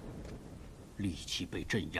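An elderly man speaks calmly and gravely.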